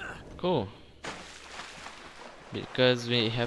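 Water splashes loudly as a body drops into it.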